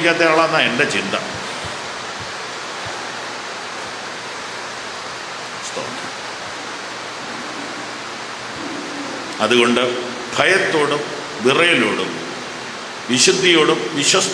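A man speaks slowly and solemnly into a microphone, with long pauses.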